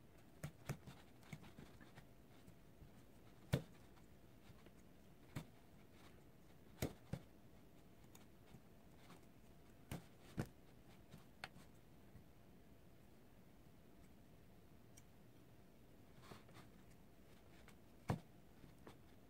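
A plastic comb taps and clicks against a hard surface.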